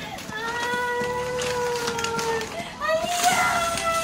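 A cardboard box rustles and scrapes as it is opened.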